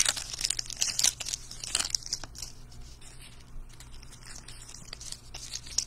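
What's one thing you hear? Trading cards shuffle and tap against each other.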